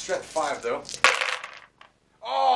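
Small dice plop into a bowl of water.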